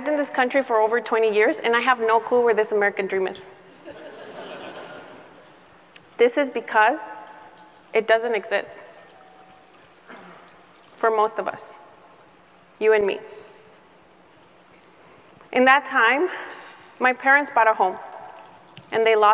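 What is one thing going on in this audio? A young woman speaks calmly into a microphone in a large room, pausing often.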